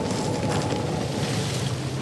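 Water splashes down nearby.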